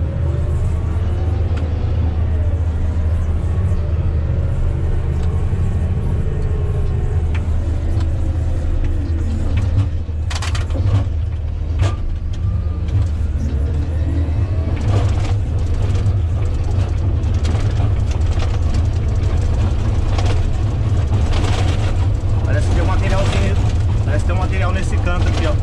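A grader blade scrapes and crunches through dirt.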